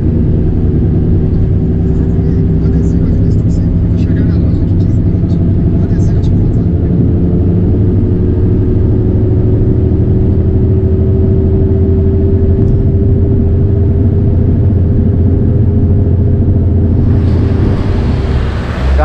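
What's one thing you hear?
A car engine hums steadily with road rumble from inside the car.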